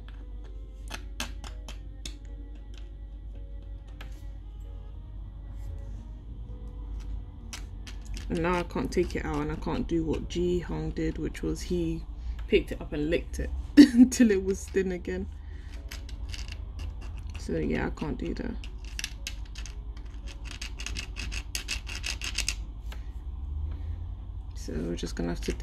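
Brittle hardened sugar cracks and snaps as it is broken apart by hand.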